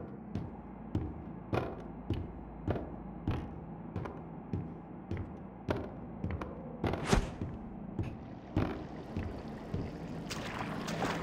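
Footsteps thud steadily on wooden floorboards.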